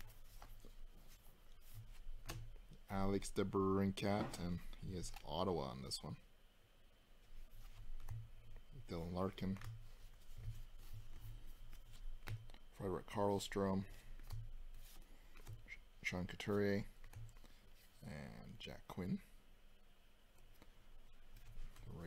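Trading cards rustle and slide against each other as they are shuffled.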